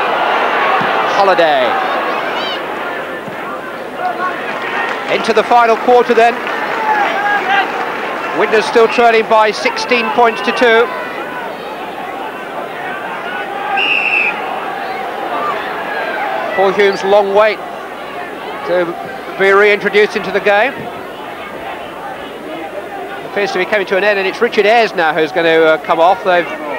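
A large crowd roars and cheers in an open stadium.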